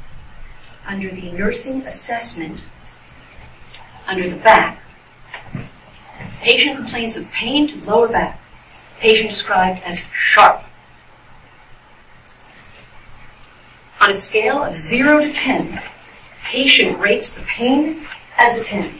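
A woman speaks clearly through a microphone in a large room.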